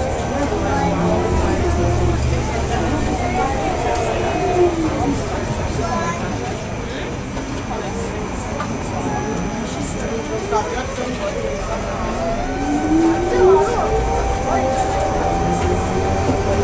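A tram rumbles and rattles as it rolls along.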